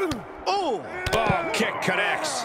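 A heavy kick thuds against a body.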